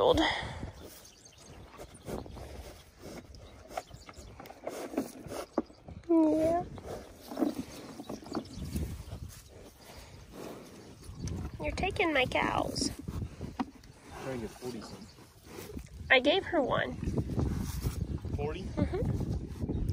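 Cows tear and munch grass close by.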